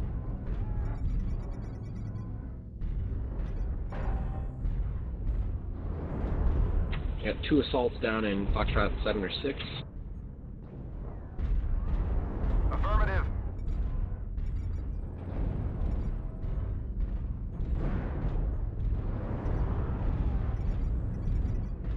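Heavy metal footsteps thud over and over.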